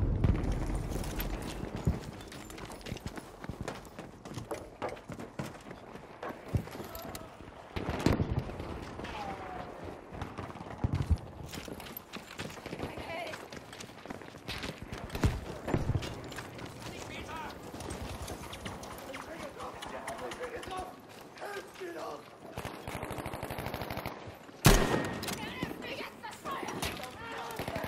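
Gunfire and explosions crack and boom around, some close and some distant.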